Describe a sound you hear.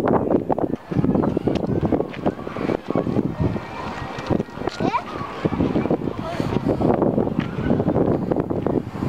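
Adults talk at a distance outdoors.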